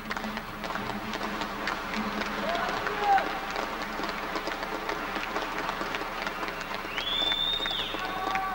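A man plays an acoustic guitar.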